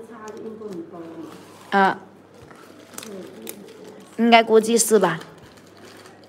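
A plastic bag crinkles as fingers open it.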